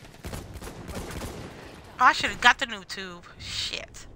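A machine gun fires in rapid bursts.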